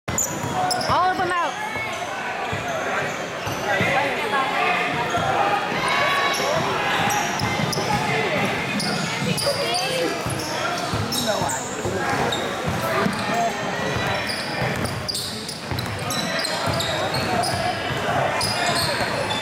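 A crowd of adults and children chatters throughout a large echoing gym.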